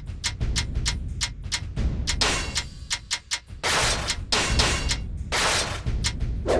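Short menu ticks sound quickly, one after another.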